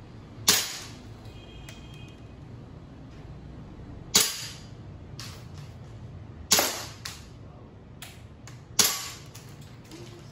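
A pistol fires sharp shots that echo in a large room.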